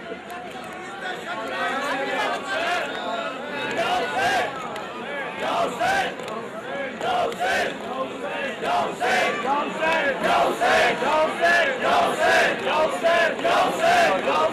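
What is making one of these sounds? A crowd of men beats their chests in a steady rhythm.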